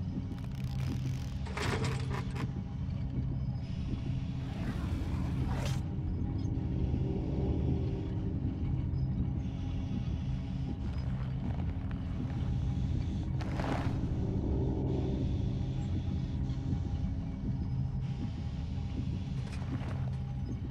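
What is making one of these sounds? A low droning hum fills the room steadily.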